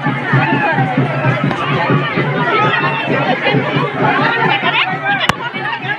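A large crowd of men talks and shouts all around, close by.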